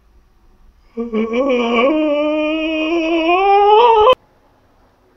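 A young man moans in a rising, wavering voice.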